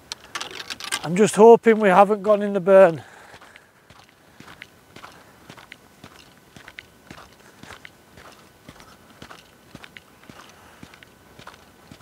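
Footsteps crunch softly on frosty grass nearby.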